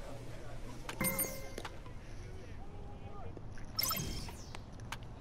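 A bright electronic chime rings out twice.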